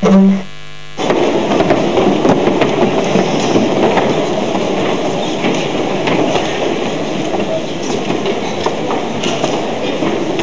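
Dancers' feet stamp and shuffle on a stage.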